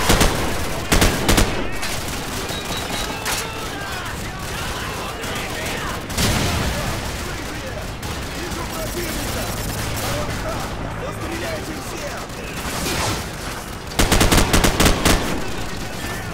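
A rifle fires in rapid bursts, sharp and loud.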